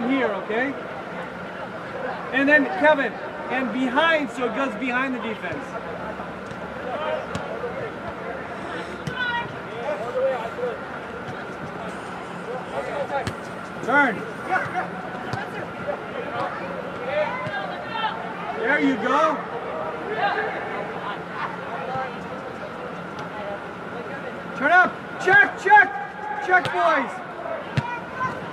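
Young men shout and call to each other across a large echoing hall.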